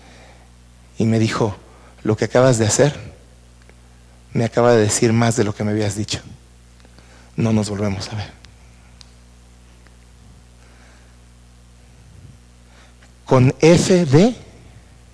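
A middle-aged man speaks with animation through a microphone, in short bursts with pauses, in an echoing room.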